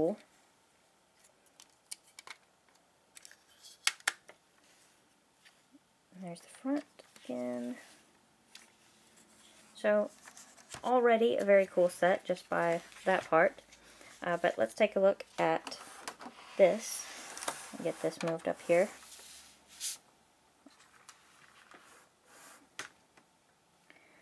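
Plastic toy bricks click and rattle as hands handle them.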